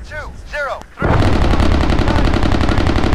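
An anti-aircraft gun fires in rapid bursts.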